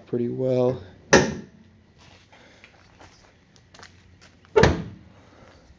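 A car hood slams shut with a loud thud.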